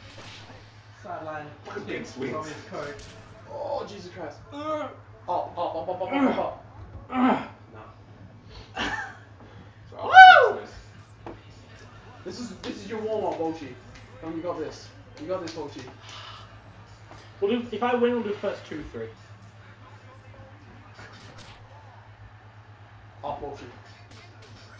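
Two young men talk and shout.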